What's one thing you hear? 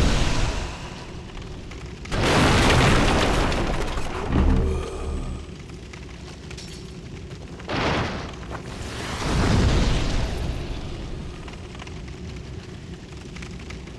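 Footsteps run over a hard floor.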